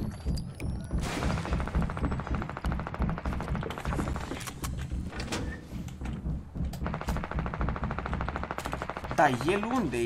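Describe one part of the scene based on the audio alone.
Footsteps patter on wooden floors in a video game.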